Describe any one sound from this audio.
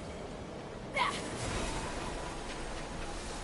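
A rushing whoosh sweeps past.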